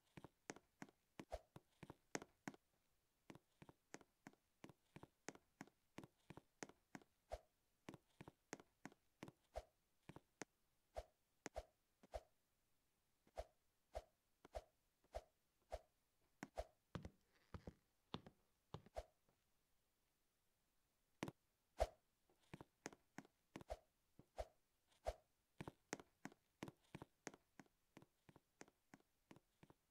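Game footsteps tap in a quick, steady patter.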